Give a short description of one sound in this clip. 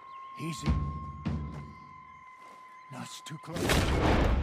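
A man speaks quietly and tensely.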